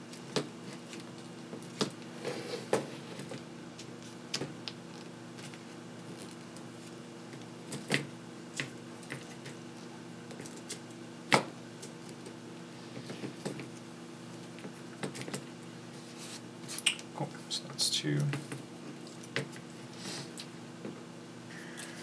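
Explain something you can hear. Small metal parts click and tap against a hard surface.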